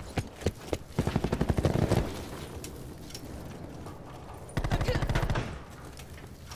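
Rapid automatic gunfire rattles in short bursts.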